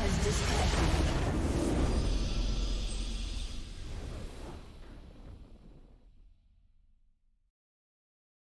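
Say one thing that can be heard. A triumphant game fanfare booms and slowly fades away.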